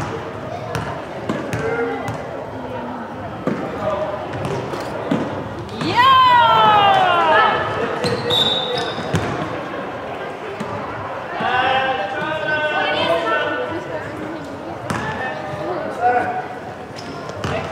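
Young women call out to each other across the hall.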